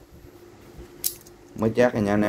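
Metal locking pliers click as their jaws are opened and closed.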